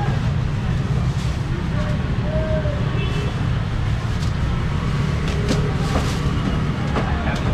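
A busy outdoor market crowd murmurs with chatter.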